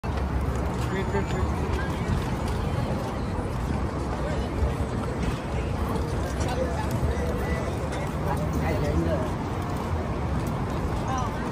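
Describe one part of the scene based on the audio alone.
Footsteps patter on pavement close by.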